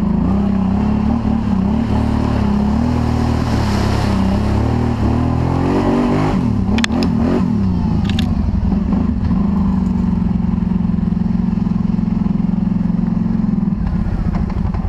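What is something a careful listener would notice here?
A quad bike engine revs loudly.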